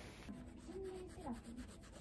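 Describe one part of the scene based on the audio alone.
A toothbrush scrubs against teeth close by.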